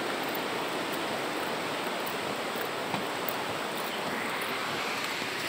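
Steady rain hisses outdoors.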